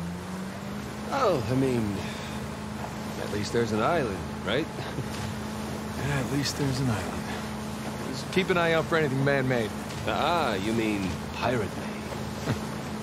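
A second man speaks casually from the boat.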